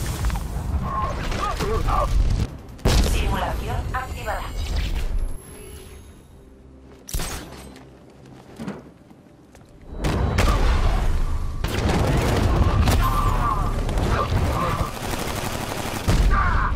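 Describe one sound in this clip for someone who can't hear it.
Heavy punches and kicks thud during a brawl.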